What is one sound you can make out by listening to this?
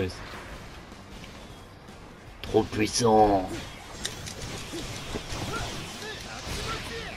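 Swords slash and clash in a fast fight.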